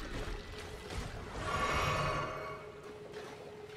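A magic spell whooshes and shimmers.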